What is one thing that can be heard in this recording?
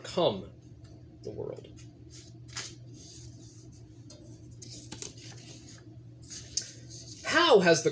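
Book pages rustle as they are turned.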